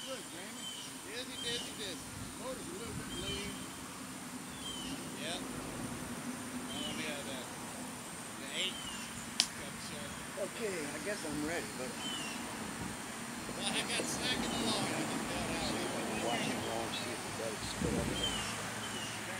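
A light breeze rustles tree leaves outdoors.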